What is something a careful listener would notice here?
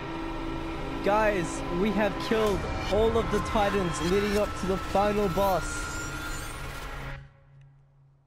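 A bright, warbling magical tone swells as light bursts outward.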